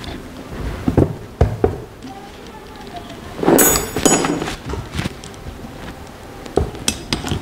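A wrench clinks against a starter motor's metal casing.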